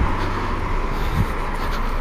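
A car drives past on a nearby road.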